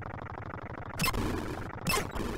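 An electronic explosion crackles briefly.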